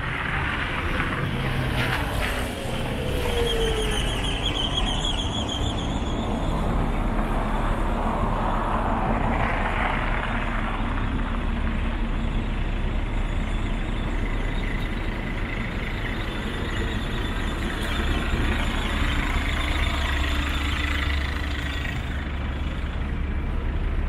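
Traffic hums steadily on a city street outdoors.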